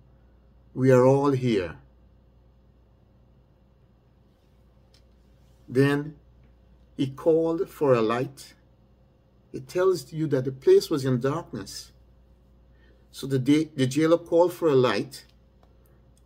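A middle-aged man speaks calmly in short phrases with pauses, heard over an online call.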